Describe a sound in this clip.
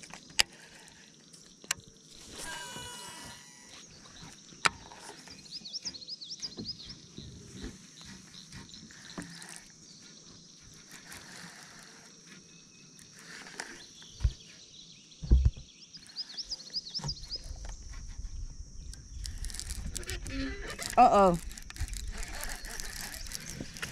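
Hands knock and rub against a fishing rod.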